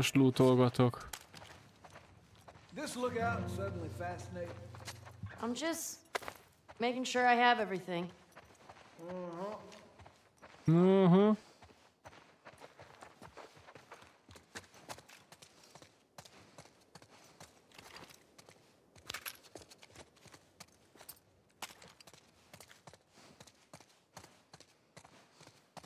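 Footsteps tread on a wooden floor.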